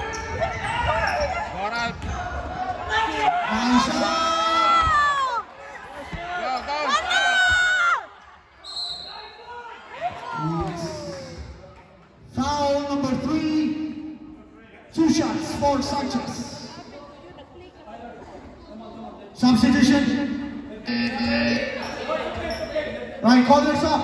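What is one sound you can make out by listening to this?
A crowd of spectators shouts and cheers.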